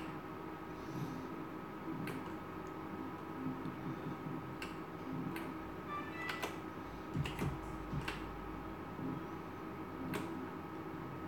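A slot machine's reels spin and stop with sharp clicks.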